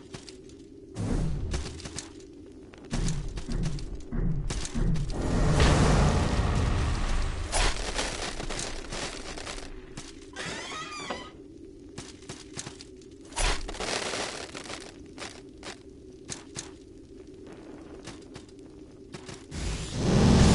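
Sword slashes and impacts ring out in quick bursts.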